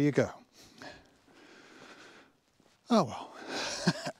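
An elderly man speaks calmly, close to the microphone.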